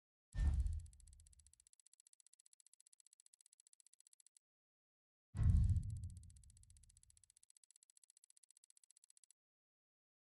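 A rapid electronic ticking counts up a score.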